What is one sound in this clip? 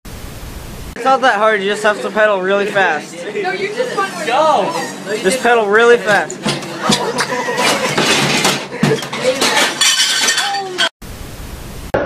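Young men shout and laugh excitedly nearby.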